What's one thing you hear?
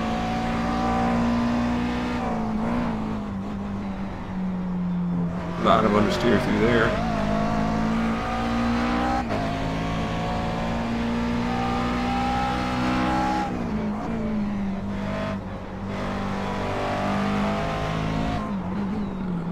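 A race car engine roars, rising and falling in pitch as it shifts gears.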